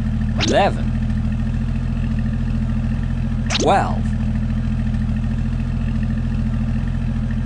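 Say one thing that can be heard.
A cartoon truck engine hums steadily.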